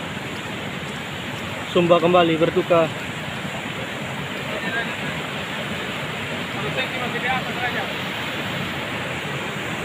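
Brown floodwater rushes and roars.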